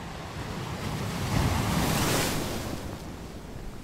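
A large wave breaks with a loud rushing roar.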